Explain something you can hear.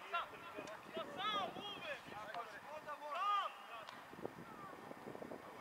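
Young men shout to each other from a distance across an open outdoor field.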